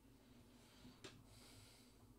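A hand bumps against a microphone with a sudden thump.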